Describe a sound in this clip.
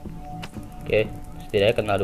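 A taser crackles with an electric zap.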